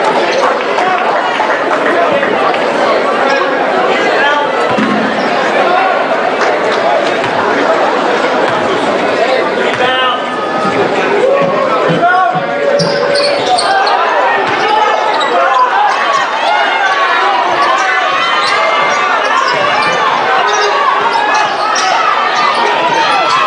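A large indoor crowd murmurs and chatters in an echoing gym.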